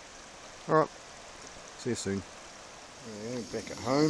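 A river flows over stones.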